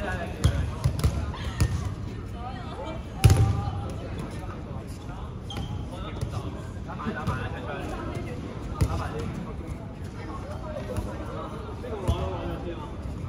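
Balls bounce with sharp thuds on a hard floor in a large echoing hall.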